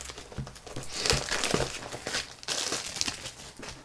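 Plastic wrapping crinkles as it is pulled off a box.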